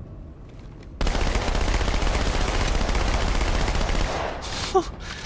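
A rifle fires in a rapid, continuous burst.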